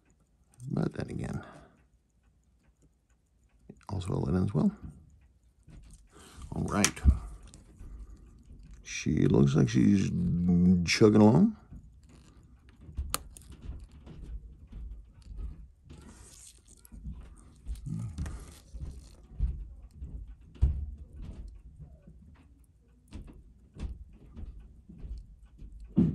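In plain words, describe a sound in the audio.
Metal tweezers tap and scrape lightly against a small watch movement.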